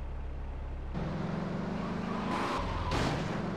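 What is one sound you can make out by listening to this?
Car tyres screech loudly.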